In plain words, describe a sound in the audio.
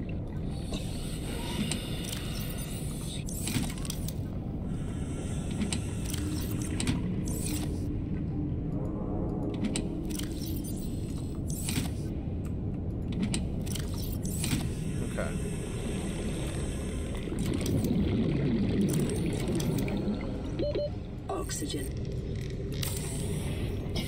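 Short game interface clicks and chimes sound.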